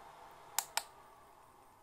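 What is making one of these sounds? A plastic button clicks under a finger.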